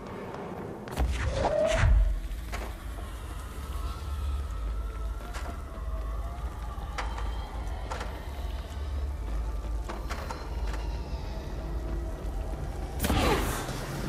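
A heavy metal barrel whooshes through the air and clangs.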